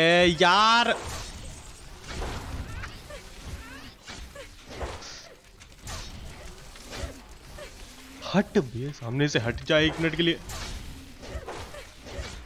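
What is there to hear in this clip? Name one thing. Game magic blasts and clashes crackle and thump.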